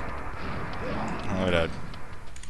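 A monster growls and snarls up close.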